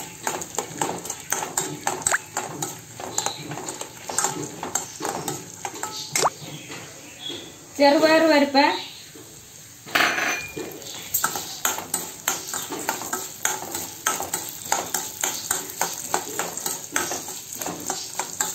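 A metal spoon scrapes and clatters against a metal pan as nuts and lentils are stirred.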